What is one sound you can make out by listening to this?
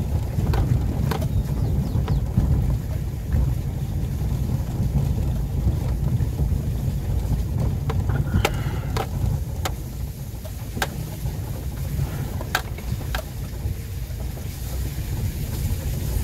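Tyres roll and bump over a rough, wet dirt road.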